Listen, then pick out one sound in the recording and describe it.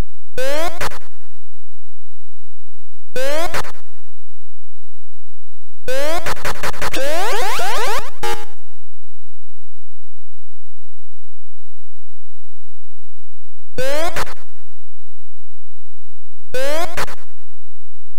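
Short electronic chirps sweep quickly downward in pitch, again and again with long pauses between.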